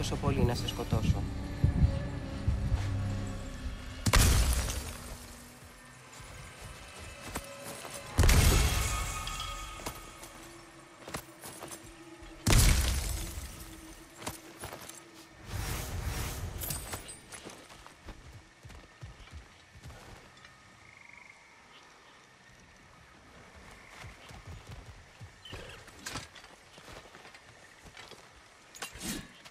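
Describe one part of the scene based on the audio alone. Heavy footsteps crunch over leaves and soil.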